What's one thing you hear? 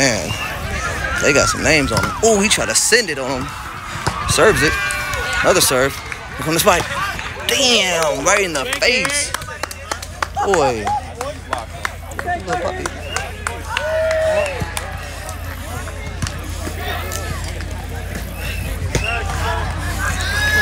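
A crowd of young men and women chatters and shouts nearby outdoors.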